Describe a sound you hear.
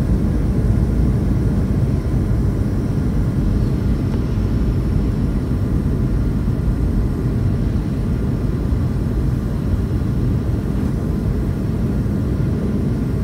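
Jet engines roar steadily inside an airplane cabin.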